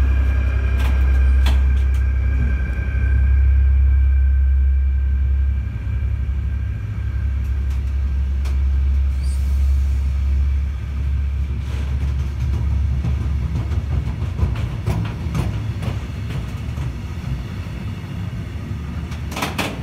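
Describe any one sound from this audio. A long freight train's wagons clatter and rumble over the rails.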